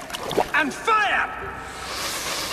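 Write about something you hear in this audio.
A man shouts a command loudly.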